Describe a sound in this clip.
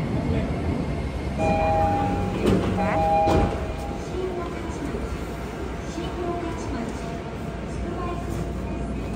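A stopped train hums steadily.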